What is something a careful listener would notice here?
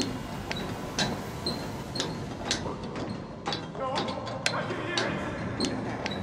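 Metal ladder rungs clank under hands and feet during a climb.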